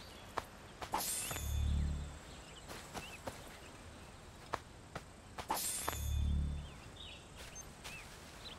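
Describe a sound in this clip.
Cloth rustles and soft thumps sound as a body is searched.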